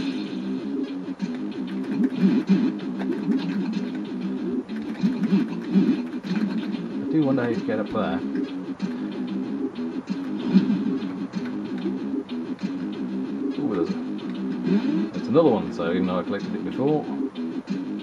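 Chiptune video game music plays steadily.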